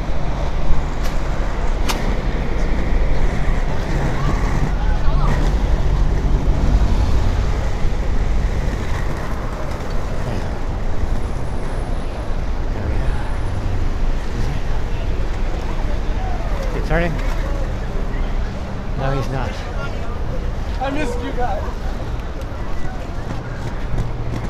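A crowd chatters nearby.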